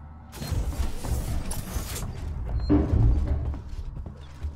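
A heavy metal door slides open with a loud hiss and rumble.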